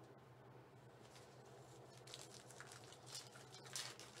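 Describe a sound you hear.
Foil card packs crinkle and rustle as they are handled.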